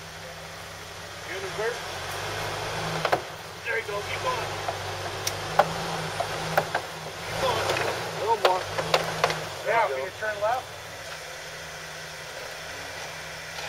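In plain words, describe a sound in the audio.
An engine idles and revs in low bursts.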